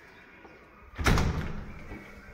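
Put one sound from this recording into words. A door shuts with a thud.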